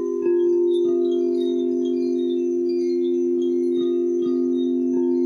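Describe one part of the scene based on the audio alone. A mallet softly strikes a singing bowl now and then.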